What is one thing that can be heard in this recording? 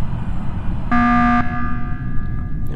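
A game alarm blares briefly.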